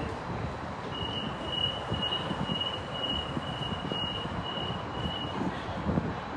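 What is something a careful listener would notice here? A train's door warning beeps rapidly.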